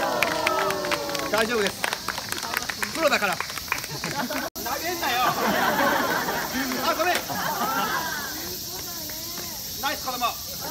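Children call out and shout excitedly.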